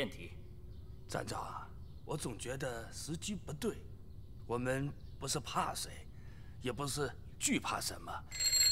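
An elderly man speaks calmly and gravely.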